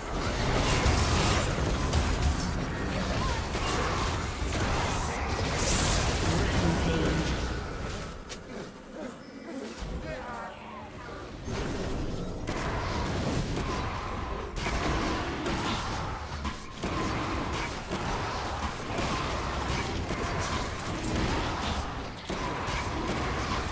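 Magic blasts and sword strikes crackle and thump in a busy fight.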